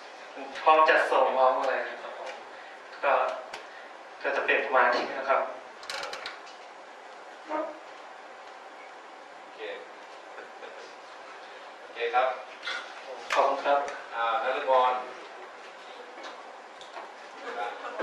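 A young man speaks into a microphone over loudspeakers in a room, in bursts with pauses.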